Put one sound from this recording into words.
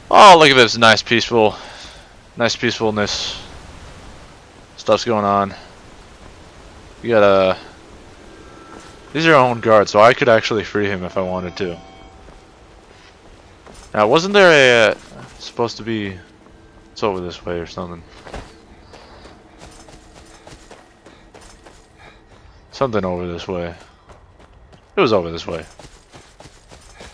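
Footsteps crunch over stone and grass.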